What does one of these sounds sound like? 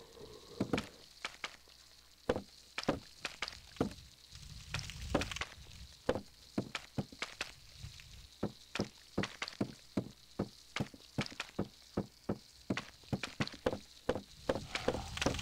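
Hands and feet clunk rhythmically on a wooden ladder while climbing.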